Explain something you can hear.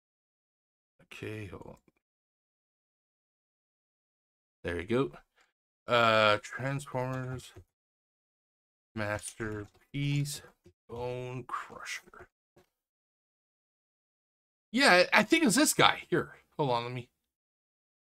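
A middle-aged man talks casually into a microphone, in short bursts with pauses.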